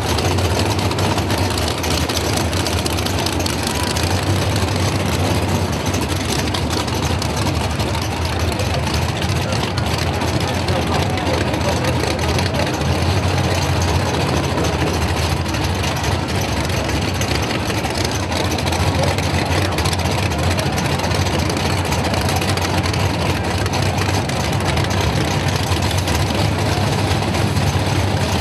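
Car engines rumble loudly and steadily.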